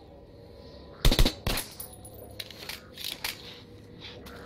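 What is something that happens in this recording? Gunshots ring out in short, sharp bursts.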